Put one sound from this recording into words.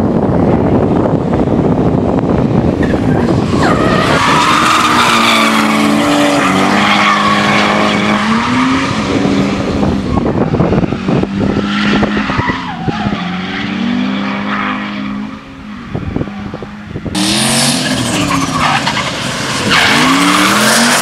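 Car engines roar and rev hard, rising and falling in pitch.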